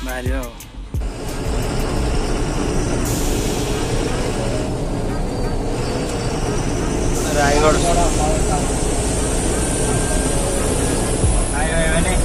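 A vehicle engine rumbles with road noise while driving.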